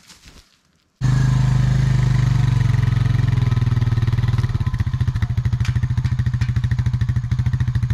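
An all-terrain vehicle engine idles loudly nearby.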